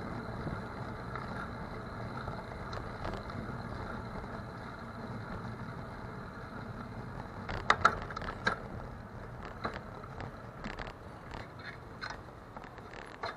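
Tyres roll over the road surface.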